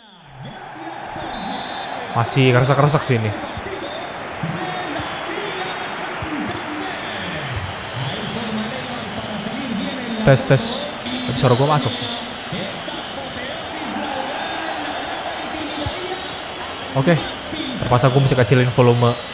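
A stadium crowd murmurs and cheers steadily.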